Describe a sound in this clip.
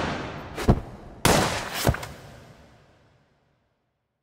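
A gunshot bangs and echoes away.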